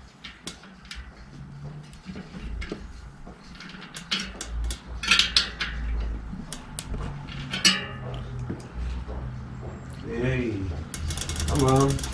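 Metal tools click and clink against a bicycle.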